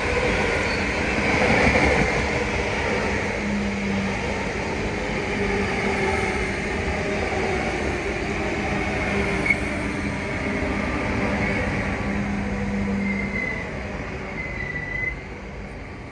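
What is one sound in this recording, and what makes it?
A passenger train rumbles and clatters along the tracks close by.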